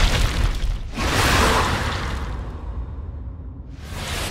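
A burst of flame roars with a loud whoosh, then dies away.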